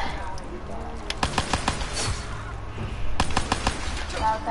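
A gun fires in quick bursts of shots.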